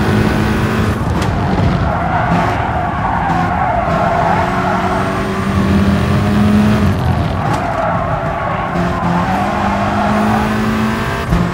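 Tyres squeal as the car brakes hard into corners.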